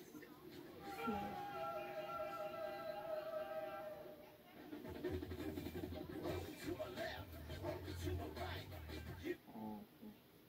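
Music plays from a television loudspeaker, then stops.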